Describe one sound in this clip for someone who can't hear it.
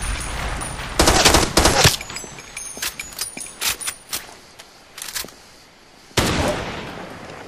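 A rifle fires loud shots that echo.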